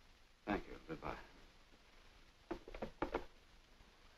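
A telephone receiver clatters down onto its cradle.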